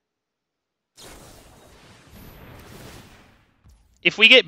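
A soft magical whoosh sweeps by.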